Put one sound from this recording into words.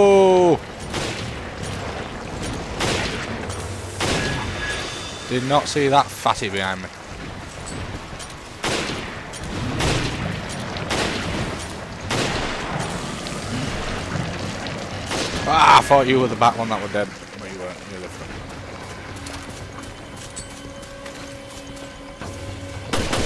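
Gunshots ring out sharply, one after another.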